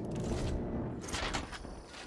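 Footsteps scuff across a gritty floor.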